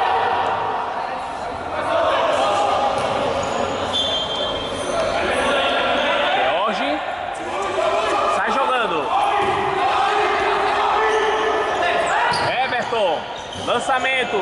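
Young men shout and call out across an echoing indoor court.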